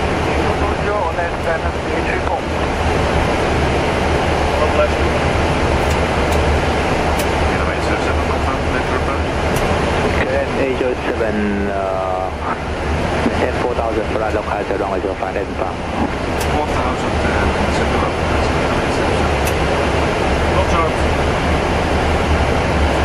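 A steady roar of air and engines fills the space.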